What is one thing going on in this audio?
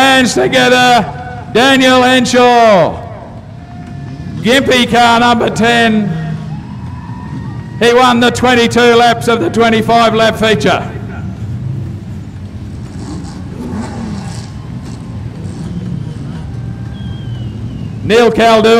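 Race car engines roar on a dirt track.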